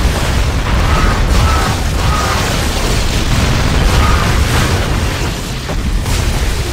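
Explosions boom and crackle in a video game battle.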